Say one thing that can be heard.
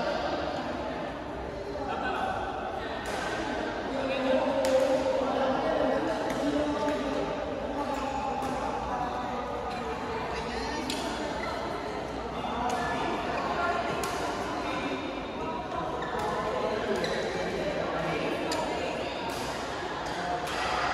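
Several people talk in the distance throughout the hall.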